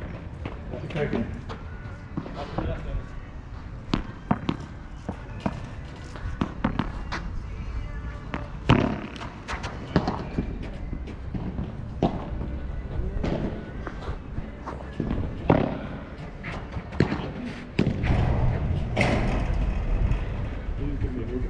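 Paddle rackets hit a ball with sharp pops, back and forth.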